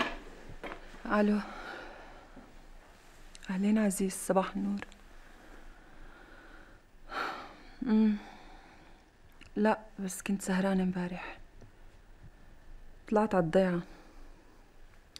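A woman speaks quietly and tensely into a phone, close by.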